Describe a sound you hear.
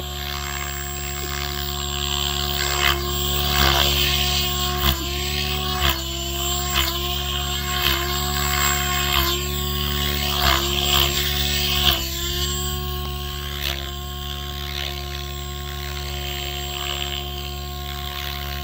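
A model helicopter's engine whines steadily with a buzzing rotor outdoors.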